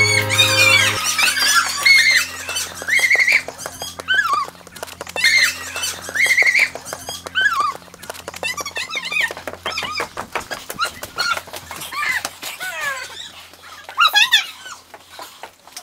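Several people run with quick footsteps on hard ground.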